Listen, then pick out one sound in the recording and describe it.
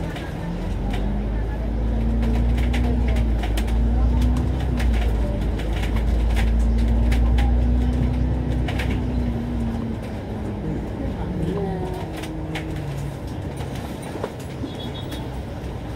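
A bus engine hums and drones steadily while driving.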